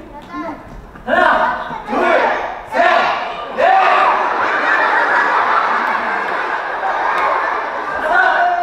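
A man speaks loudly and with animation in a large echoing hall.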